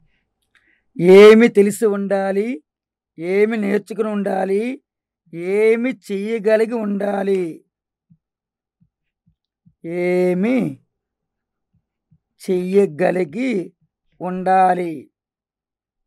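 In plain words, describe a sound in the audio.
A middle-aged man speaks calmly and clearly into a close microphone, in short phrases with pauses.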